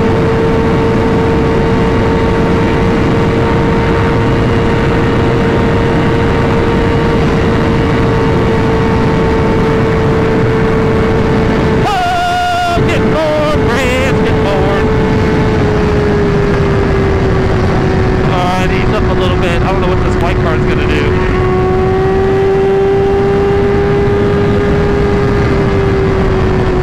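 A motorcycle engine hums steadily at high speed.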